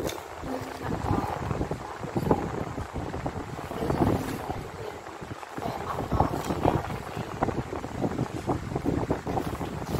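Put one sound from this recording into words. Paper rustles as it slides across a tabletop.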